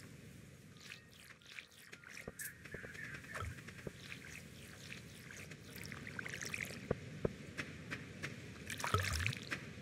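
Water splashes from a watering can onto soil.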